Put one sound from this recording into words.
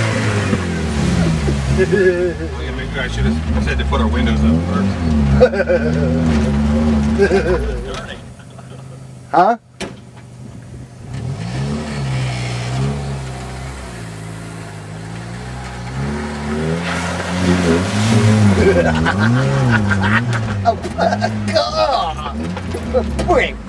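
An off-road vehicle's engine revs and roars up close, rising and falling in pitch.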